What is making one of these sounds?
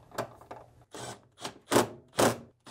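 A cordless screwdriver whirs in short bursts.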